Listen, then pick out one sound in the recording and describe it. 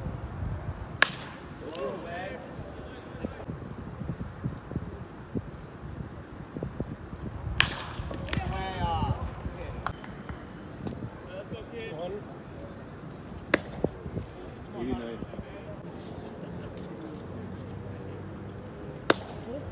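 A baseball smacks sharply into a catcher's mitt, again and again.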